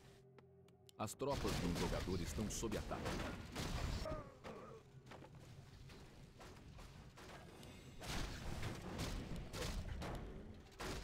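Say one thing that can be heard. Game battle sounds clash and clatter.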